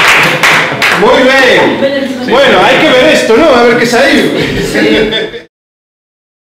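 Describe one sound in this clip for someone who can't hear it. A group of young men and women sing together loudly.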